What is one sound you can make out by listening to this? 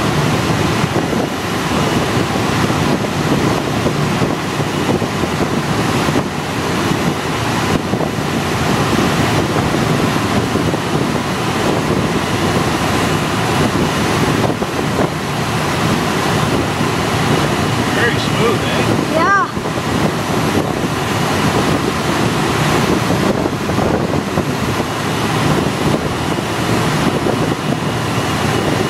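Wind rushes hard past the open cabin window.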